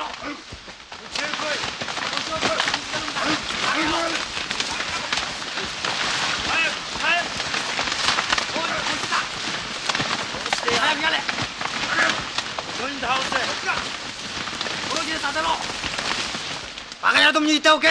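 A crowd of men murmurs and talks over one another.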